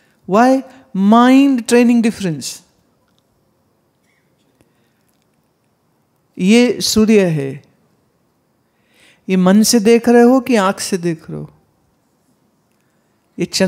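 A woman chants clearly into a microphone, in short phrases with pauses.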